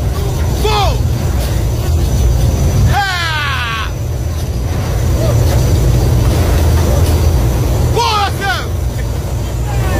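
Aircraft engines roar steadily and loudly.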